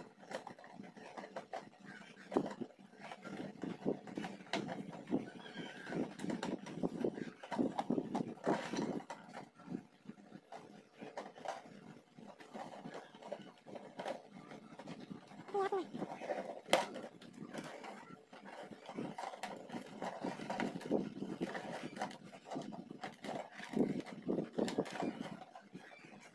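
Plastic containers rattle and knock as hands twist and shift them.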